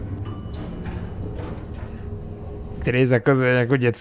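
An elevator door slides open.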